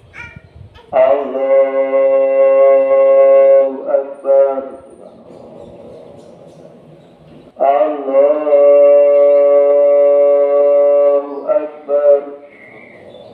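A man chants a long, drawn-out prayer through a loudspeaker, outdoors.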